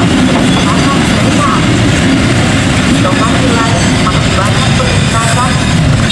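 A freight train rumbles past with wheels clattering on the rails.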